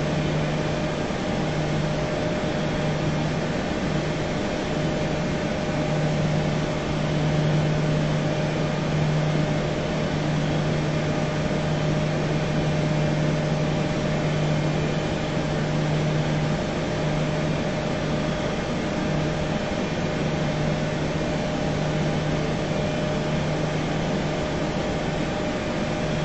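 Jet engines hum steadily.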